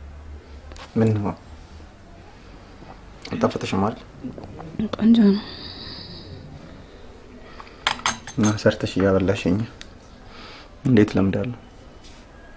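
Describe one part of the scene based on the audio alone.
A man speaks softly and gently, close by.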